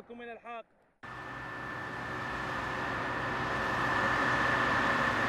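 A combine harvester engine drones steadily and grows louder.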